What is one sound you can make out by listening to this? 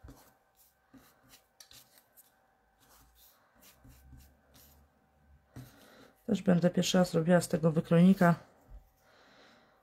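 A foam brush dabs softly on paper.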